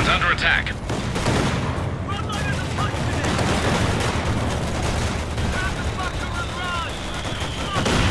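Gunfire crackles and rattles throughout.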